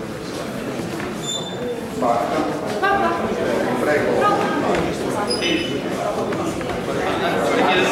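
A man speaks through a microphone in a hall with a slight echo.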